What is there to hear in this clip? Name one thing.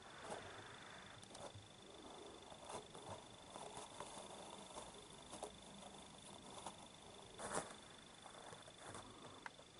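A kitten's paws scratch and thump on a carpet.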